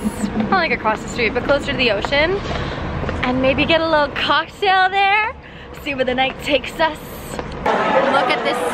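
A young woman talks excitedly and close by.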